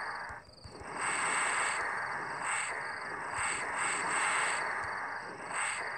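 Steam hisses loudly from pipes.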